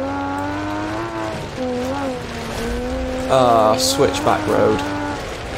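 A car engine hums steadily, its pitch rising and falling as it accelerates.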